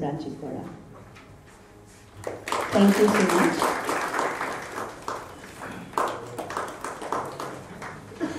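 A woman speaks into a microphone over a loudspeaker, in an echoing hall.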